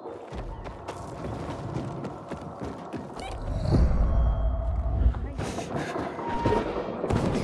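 Footsteps run and thud on wooden planks.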